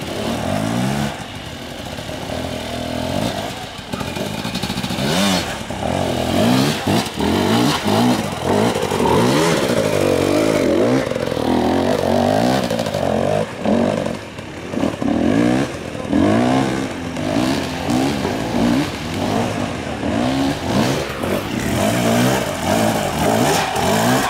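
A dirt bike engine revs up and down, labouring close by.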